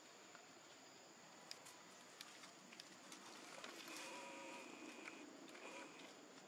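A monkey rustles through leaves with its hand.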